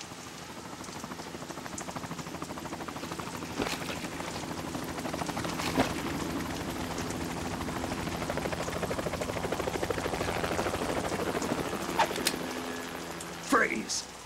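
A helicopter hovers with a steady, swelling drone.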